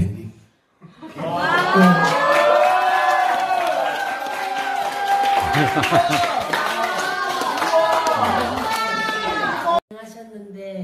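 A group of teenagers claps.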